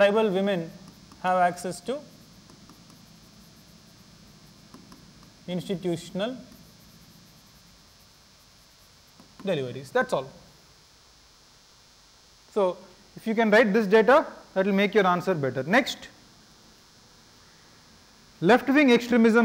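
A man lectures calmly in short phrases, heard through a microphone in a room.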